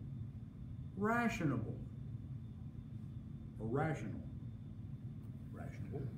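An elderly man speaks calmly and slowly into a nearby microphone.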